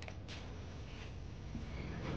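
A gas burner hisses steadily.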